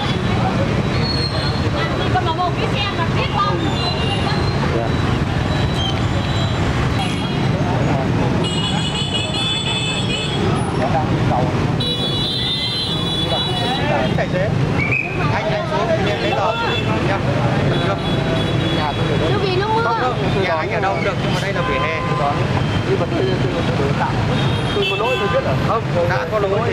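A crowd of men and women talk over each other close by.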